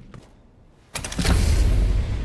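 A metal lever clunks as it is pulled.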